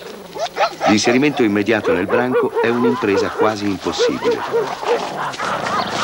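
Dogs snarl and yelp loudly while fighting close by.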